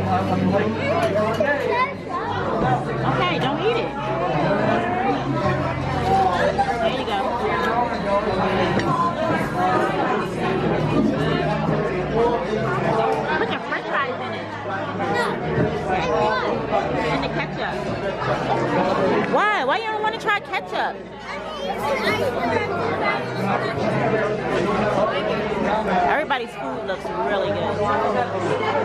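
Many voices chatter and murmur in the background.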